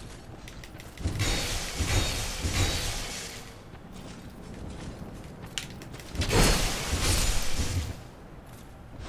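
A heavy axe swings through the air with a whoosh.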